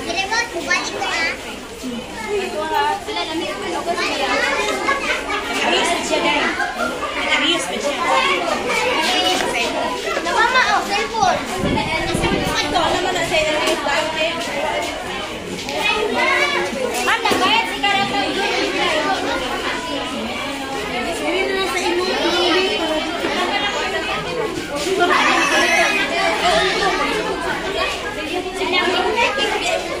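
Women talk nearby over the children's noise.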